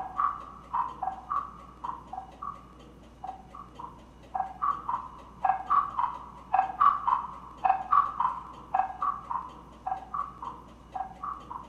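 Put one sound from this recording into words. Soft mallets strike hollow wooden blocks in a steady, repeating rhythm, ringing with warm pitched knocks.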